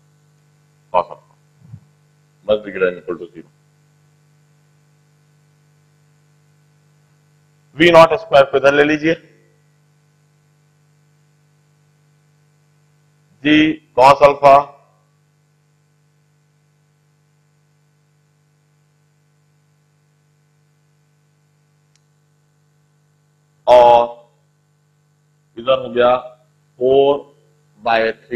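A middle-aged man speaks in short bursts, explaining calmly through a microphone.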